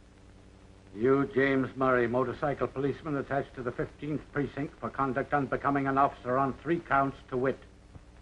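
An older man speaks sternly, reading out.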